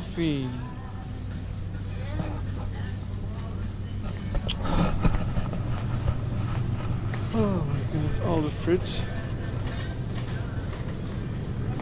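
Refrigerated display cases hum steadily in the background.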